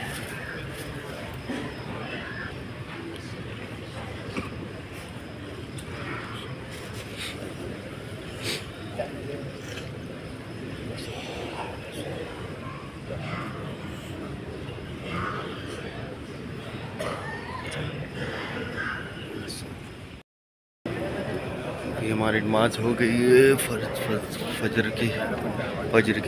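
A large crowd murmurs in a big echoing hall.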